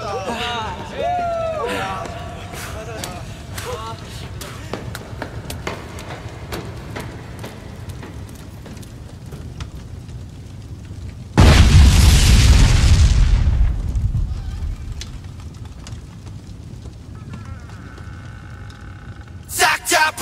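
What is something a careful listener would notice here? Small fires crackle.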